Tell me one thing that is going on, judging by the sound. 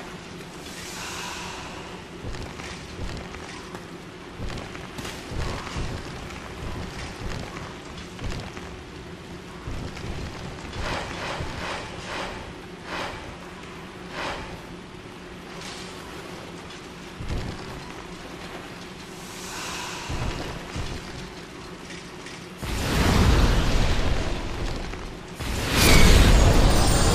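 Armoured footsteps clank on creaking wooden planks.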